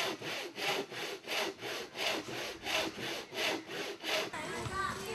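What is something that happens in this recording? Sandpaper rubs rhythmically back and forth across a wooden board.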